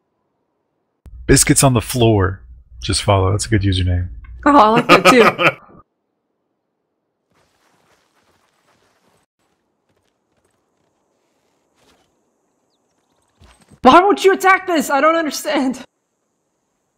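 A man talks with animation through a headset microphone.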